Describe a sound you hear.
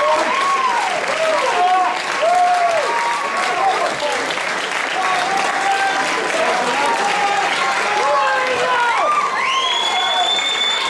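A crowd of spectators claps outdoors.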